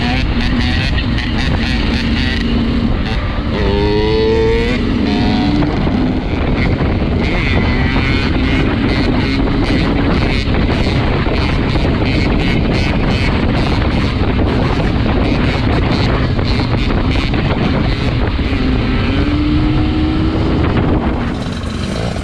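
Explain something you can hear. Wind rushes and buffets loudly.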